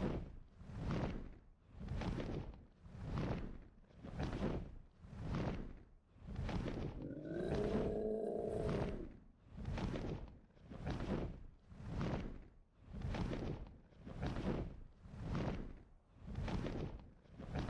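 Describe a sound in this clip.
Large wings flap in steady, rhythmic whooshes.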